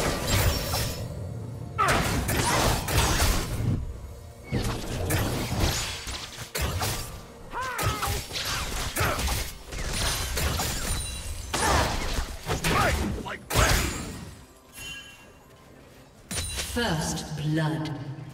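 Game spells burst and crackle in a busy fight.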